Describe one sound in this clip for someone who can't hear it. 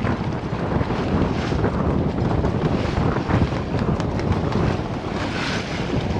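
Waves splash and rush against the hull of a sailing boat.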